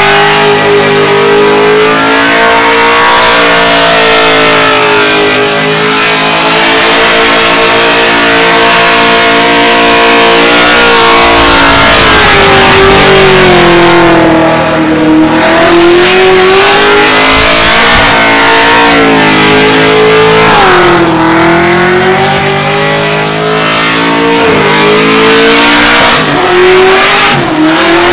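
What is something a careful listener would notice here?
A car engine roars and revs loudly, rising and falling.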